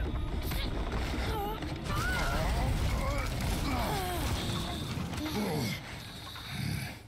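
A wooden bridge crashes apart with loud splintering.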